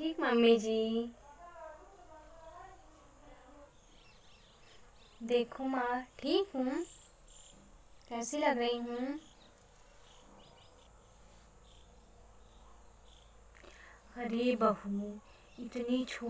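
A young woman sings close by, in short phrases with pauses.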